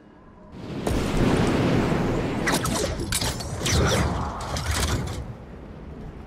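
Wind rushes past during a freefall.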